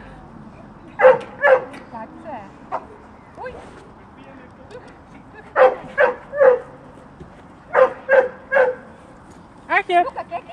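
A dog barks in short bursts.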